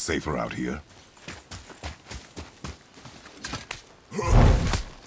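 Heavy footsteps tread on soft ground.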